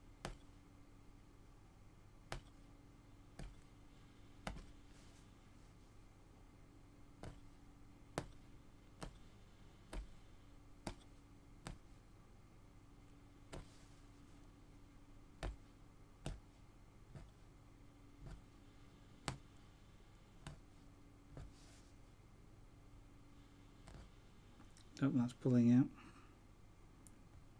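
A punch needle pokes through taut cloth with soft, regular pops.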